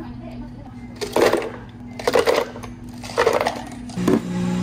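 Ice cubes clatter into a blender jar.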